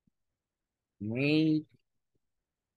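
A man says a single word clearly over an online call.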